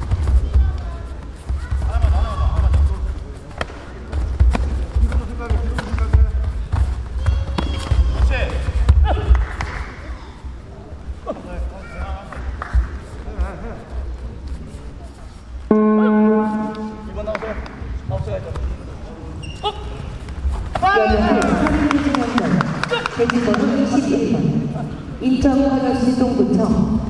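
Kicks thud against body protectors in a large echoing hall.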